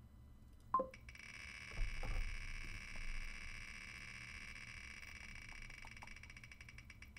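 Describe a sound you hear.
A spinning prize wheel ticks rapidly and gradually slows.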